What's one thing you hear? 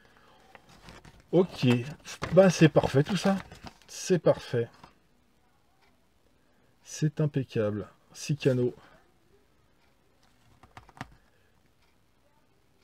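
Paper rustles and crinkles in hands.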